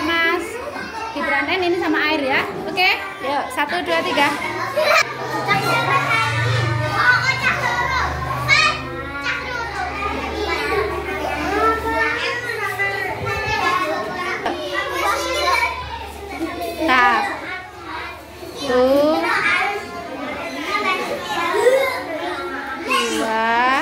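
Young children talk and chatter nearby.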